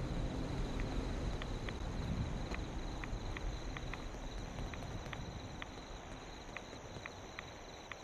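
Water gurgles and bubbles, heard from underwater.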